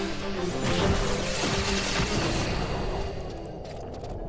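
A magic spell whooshes and shimmers loudly.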